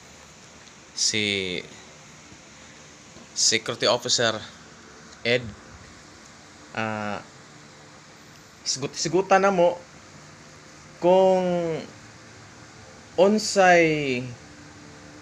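A man speaks close to the microphone in short, animated bursts with pauses between.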